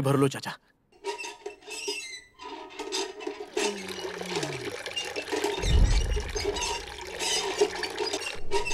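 A hand pump creaks and squeaks as its handle is worked.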